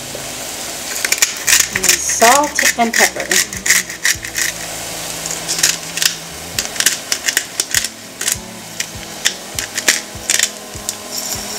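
A pepper mill grinds with quick, rattling clicks.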